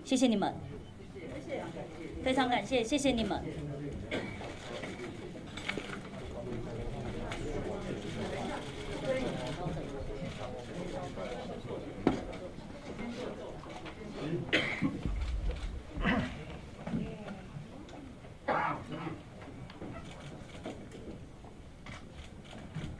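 A crowd of people murmurs in a room.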